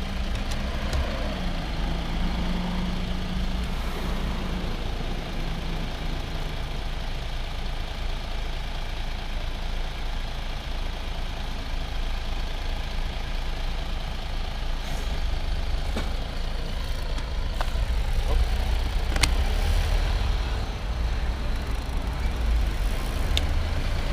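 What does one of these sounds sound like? Wind rumbles steadily past a moving bicycle.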